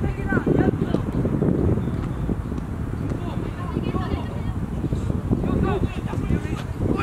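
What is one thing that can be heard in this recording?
Young players call out to each other across an open field.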